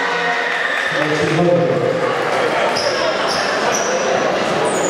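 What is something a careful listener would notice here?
A crowd cheers briefly.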